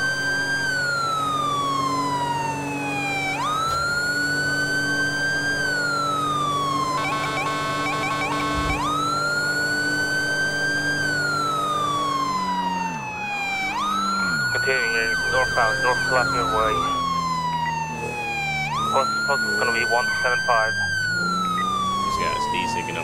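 A car engine hums steadily as the car drives fast.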